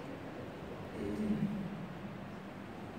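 A man murmurs quietly close by.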